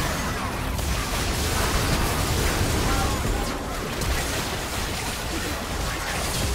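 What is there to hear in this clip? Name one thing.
Magic spells crackle and burst in a busy fight.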